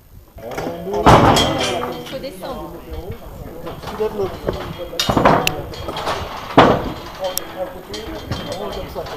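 Metal frames clank and rattle as they are carried.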